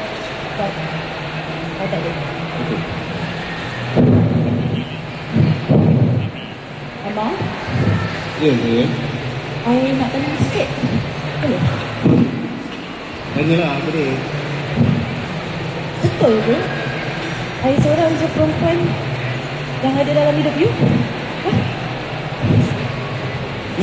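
A man speaks with animation through a microphone and loudspeakers, echoing in a large hall.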